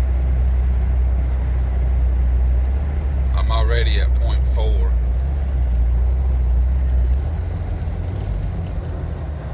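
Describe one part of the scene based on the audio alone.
A Jeep Wrangler's engine drones from inside the cabin while cruising.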